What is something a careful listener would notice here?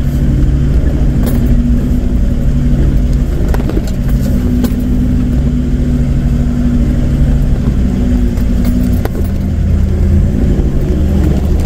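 A vehicle engine rumbles steadily, working hard up a rough slope.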